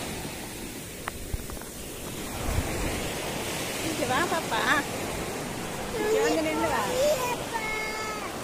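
Waves wash onto the shore.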